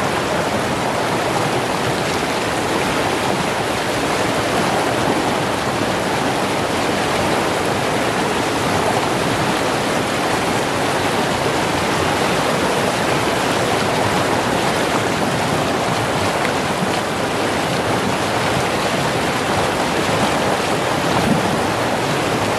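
Rushing water roars loudly over rocks close by.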